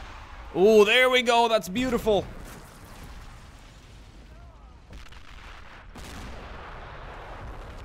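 An explosion booms in the distance.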